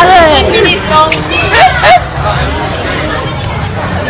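A young girl laughs loudly close by.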